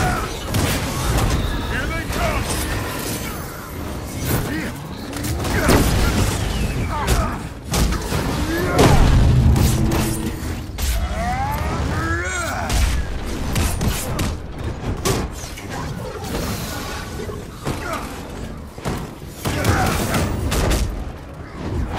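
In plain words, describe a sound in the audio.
Punches and energy blasts land with heavy thuds and crackling impacts.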